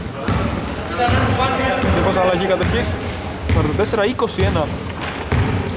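Men shout and call out to each other in a large echoing gym.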